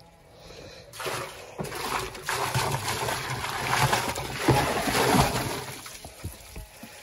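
Water splashes as it pours out of a plastic bucket into a barrel.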